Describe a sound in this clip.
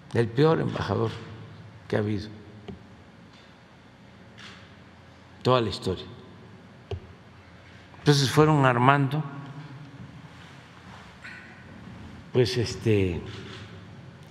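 An elderly man speaks calmly into a microphone, in short bursts with pauses, in an echoing hall.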